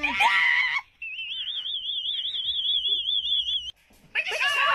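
A young man screams in a long, wavering high cry.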